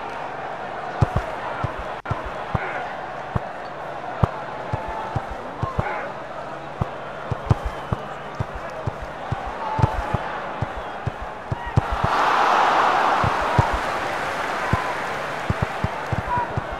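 A ball is kicked with short thuds.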